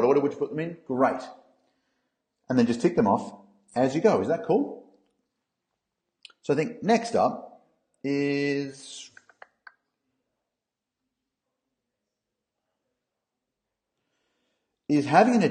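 A man talks calmly through a microphone, in short bursts with pauses.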